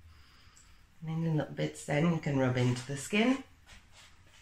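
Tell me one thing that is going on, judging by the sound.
A woman speaks calmly up close.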